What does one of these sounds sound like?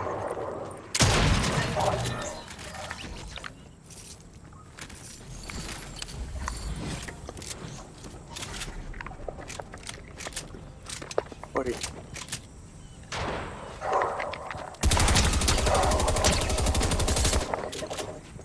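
Rapid gunshots fire in quick bursts.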